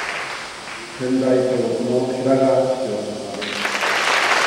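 A man chants into a microphone in a large echoing hall.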